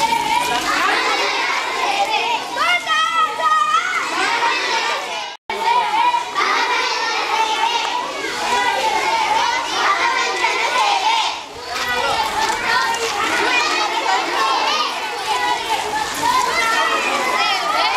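A crowd of children chatters and calls out loudly nearby.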